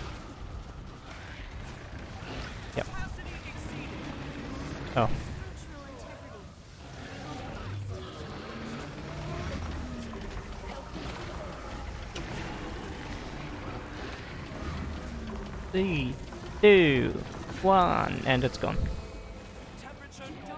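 Spells crackle and boom in a game.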